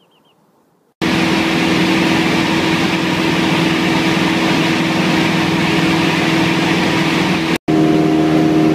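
A jet airliner's engines roar loudly and steadily.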